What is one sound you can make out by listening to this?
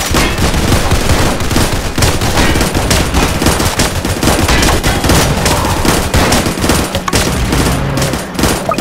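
Rapid gunfire and small blasts crackle without pause.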